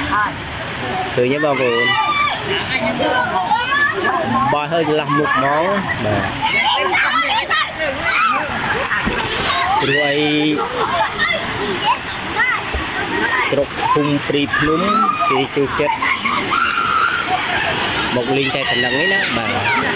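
Children shout and laugh close by.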